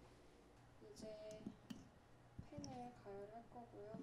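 A stove knob clicks as it turns.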